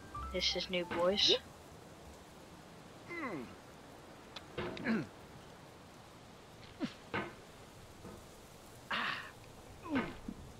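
A metal hammer scrapes and knocks against rock.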